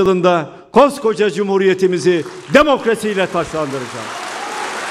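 An elderly man speaks forcefully through a microphone in a large echoing hall.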